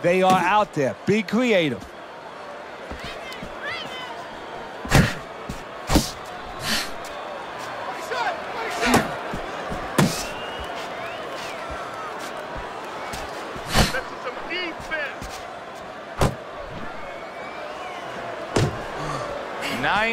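A large crowd murmurs in a big arena.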